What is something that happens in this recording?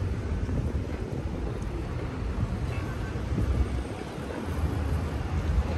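A truck engine rumbles nearby.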